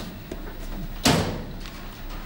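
A cardboard box thumps down onto a metal counter.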